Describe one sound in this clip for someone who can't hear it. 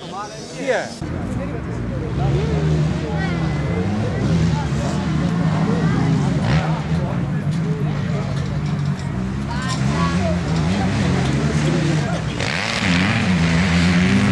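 Several motorbike engines idle and rumble steadily nearby.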